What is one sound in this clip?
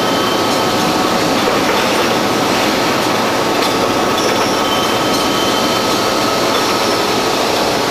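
A gas burner flame roars steadily.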